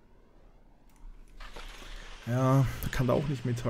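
Skis land and slide over snow.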